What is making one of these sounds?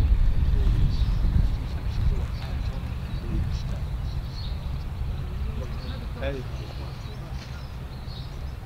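Wind blows outdoors, rumbling against the microphone.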